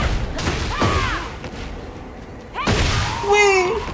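A burst of magic crackles and booms.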